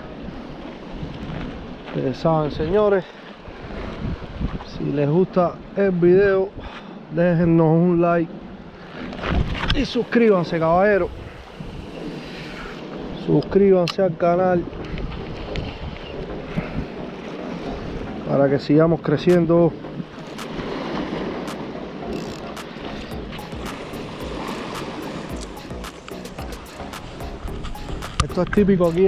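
Small waves lap against a stone sea wall.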